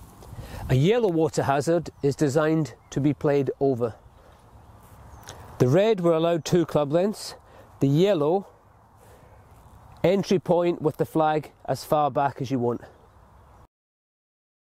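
A man talks calmly and clearly into a close microphone.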